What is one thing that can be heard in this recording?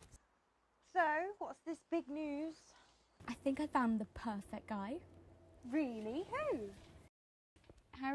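Another young woman answers calmly, close by.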